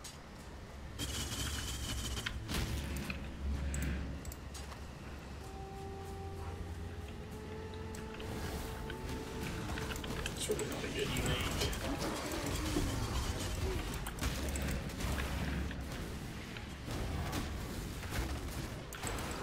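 Fiery spell blasts boom and crackle in a game.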